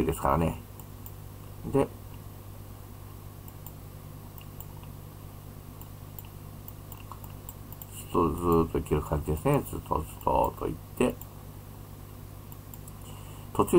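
An elderly man speaks calmly into a microphone, heard close up.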